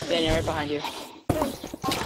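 A blaster fires with a wet, splattering burst.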